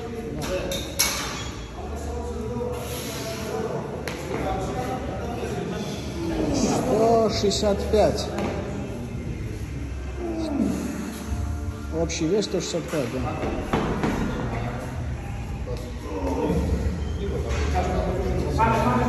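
A thick rope is hauled hand over hand and drags across a concrete floor.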